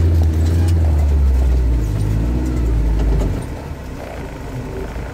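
A vehicle's engine rumbles deeply, then quietens.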